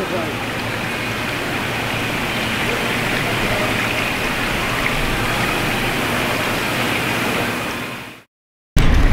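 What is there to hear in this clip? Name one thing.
Water bubbles and splashes steadily in tanks.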